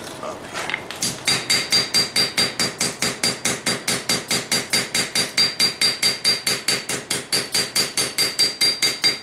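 A hammer rings in fast, steady blows on hot metal on an anvil.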